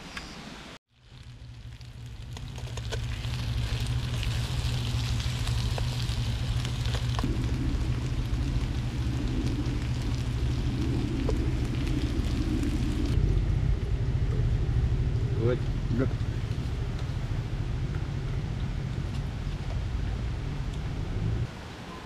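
A camping stove burner roars steadily.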